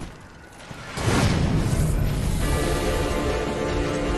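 A large creature roars loudly nearby.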